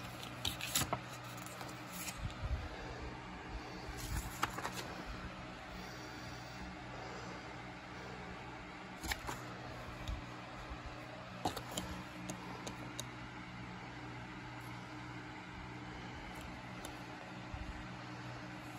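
A plastic disc case clicks and rattles as it is handled.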